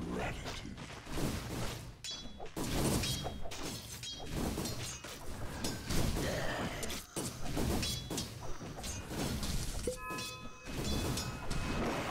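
Weapons clash and hit in quick bursts.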